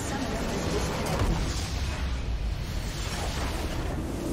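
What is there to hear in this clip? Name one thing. A large explosion booms and crumbles.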